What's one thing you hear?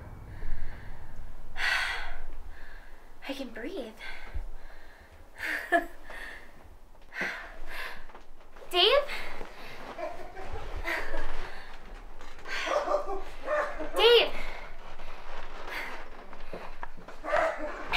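A young woman talks close by, cheerfully and with animation.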